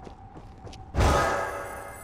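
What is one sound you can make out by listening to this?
A shimmering energy blast bursts out with a loud crackling whoosh.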